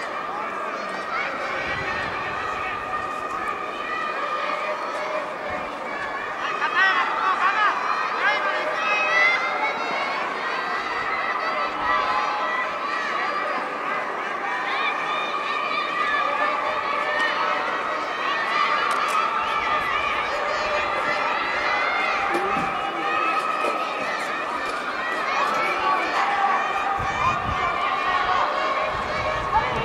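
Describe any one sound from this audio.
A crowd of spectators chatters in a large open stadium.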